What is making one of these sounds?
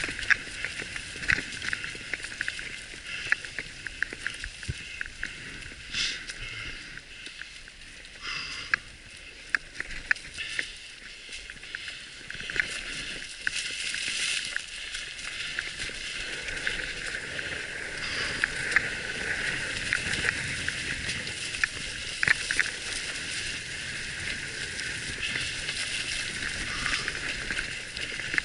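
Bicycle tyres crunch over dry leaves and dirt on a trail.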